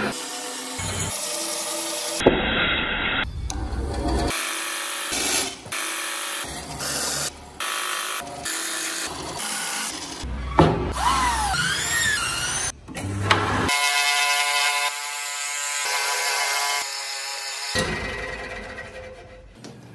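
A band saw whines as it cuts through wood.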